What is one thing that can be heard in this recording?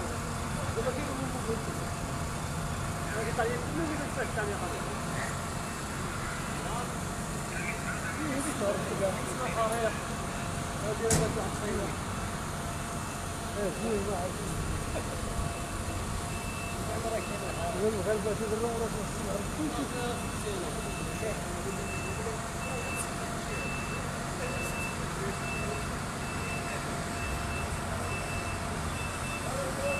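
A fire engine idles with a steady low rumble.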